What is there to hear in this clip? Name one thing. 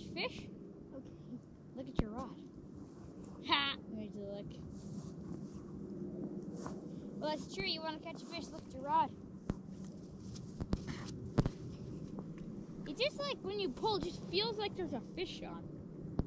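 A young child calls out in a high voice nearby, outdoors.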